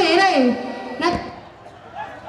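A young woman sings into a microphone through loudspeakers.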